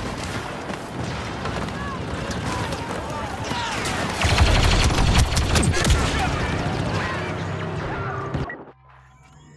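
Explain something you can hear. Blaster guns fire rapidly in a noisy battle.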